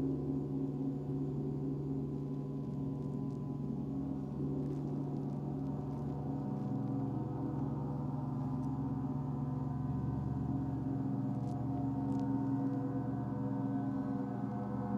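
Large gongs hum and shimmer in a deep, steady drone that slowly swells.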